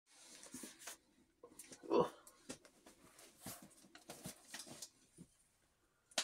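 Cardboard and plastic packaging rustle and crinkle close by.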